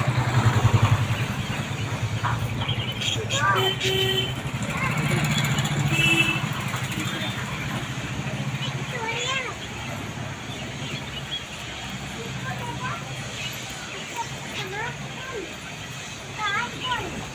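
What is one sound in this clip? Small caged birds chirp and twitter close by.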